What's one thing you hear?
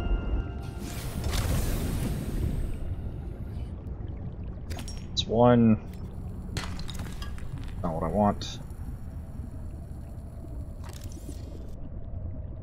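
Water swirls and bubbles softly underwater.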